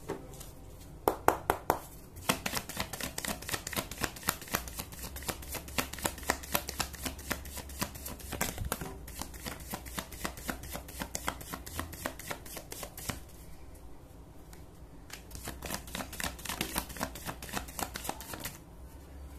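Playing cards shuffle and riffle with quick, dry clicks.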